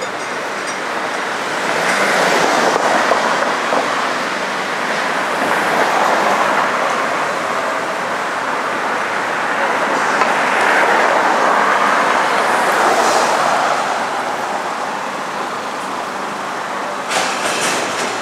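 Traffic hums and swishes steadily along a street outdoors.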